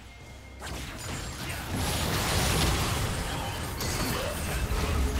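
Game characters' weapons clash and hit.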